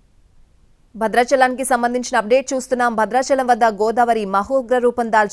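A woman reads out the news calmly through a microphone.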